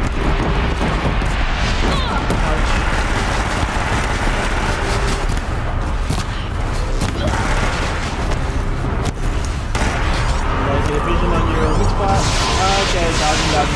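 A large machine creature roars.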